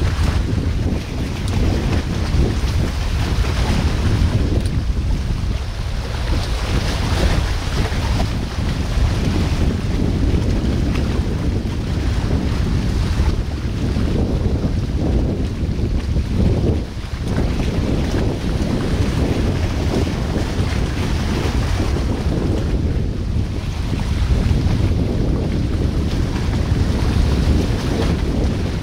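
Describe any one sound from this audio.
Rushing water churns over rocks close by.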